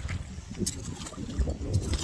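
A woman scrapes and sifts wet mud with a rake.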